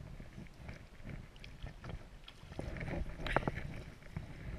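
Water splashes as a net is lifted out.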